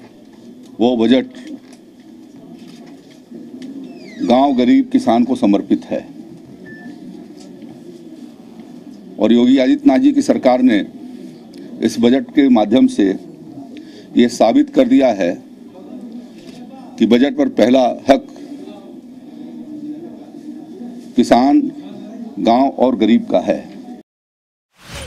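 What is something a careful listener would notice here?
An elderly man speaks calmly into microphones at close range, in short bursts with pauses.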